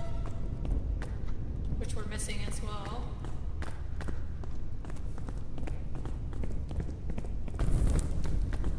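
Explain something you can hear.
Footsteps tap on a stone floor in an echoing passage.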